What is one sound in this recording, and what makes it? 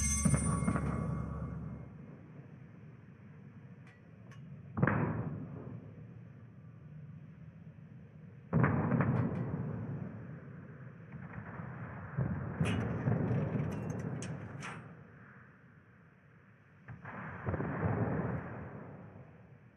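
Heavy ship guns fire in loud, deep booms that roll away.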